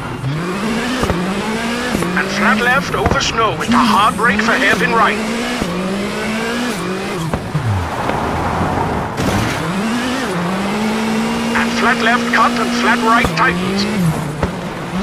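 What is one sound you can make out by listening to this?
Tyres crunch and skid over snowy gravel.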